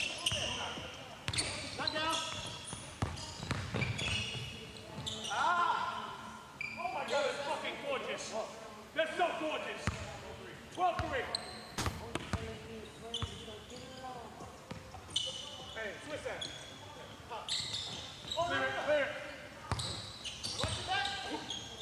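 A basketball bounces on a hard court.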